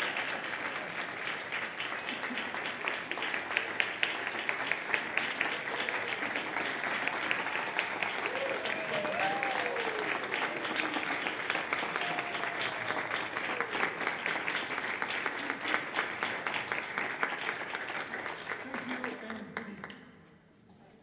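An audience applauds loudly, then the clapping stops.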